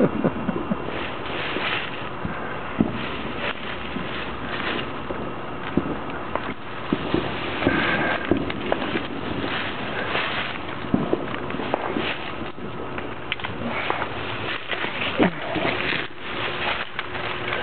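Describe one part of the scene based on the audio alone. Dry twigs rustle and scrape close by.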